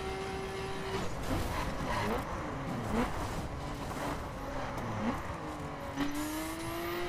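Tyres hiss and skid on a wet road.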